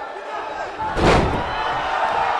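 A heavy body slams onto a wrestling ring mat with a thud.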